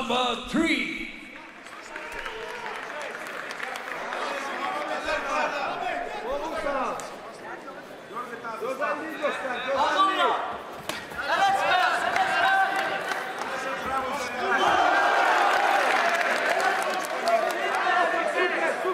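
A large crowd murmurs and cheers in a large arena.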